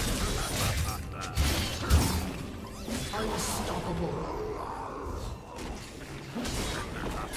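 Game spell effects crackle and explode in a fight.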